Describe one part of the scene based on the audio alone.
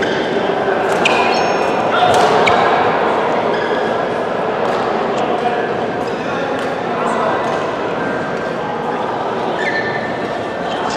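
Shoes squeak on a court floor.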